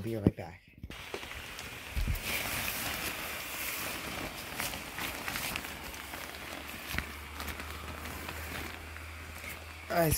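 The plastic fabric of an inflatable figure rustles and flaps as it fills with air.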